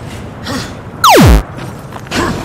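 A sharp whooshing sweep falls quickly in pitch.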